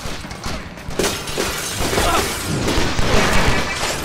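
Glass shatters and scatters.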